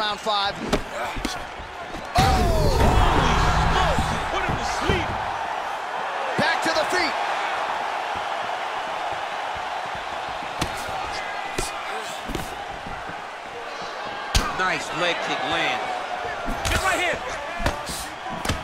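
Punches thud against a fighter's body and head.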